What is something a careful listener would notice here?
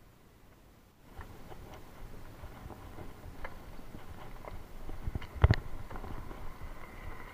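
A bicycle rolls and rattles over rough, bumpy ground.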